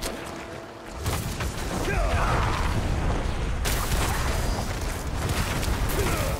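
Fiery spell blasts roar and crackle.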